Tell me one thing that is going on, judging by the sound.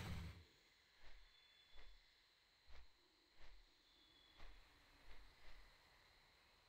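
Large wings flap in steady, heavy beats.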